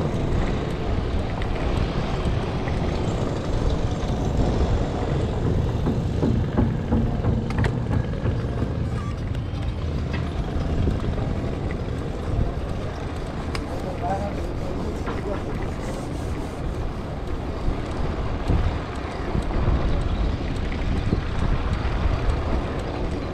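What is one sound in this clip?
Tyres of a small scooter roll and rumble over paving bricks.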